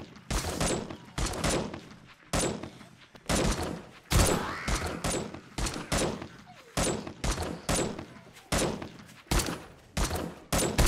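A rifle fires repeated shots, each followed by an echoing tail.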